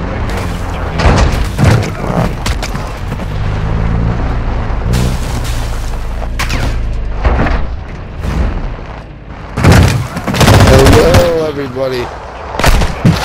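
Gunshots crack loudly in quick bursts.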